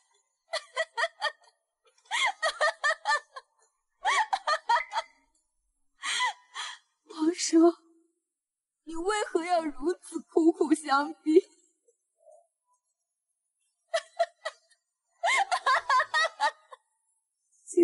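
A young woman laughs in bursts, heard up close.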